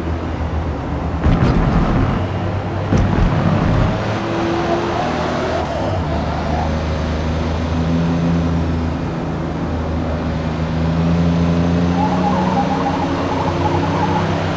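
Tyres squeal as a car slides through bends.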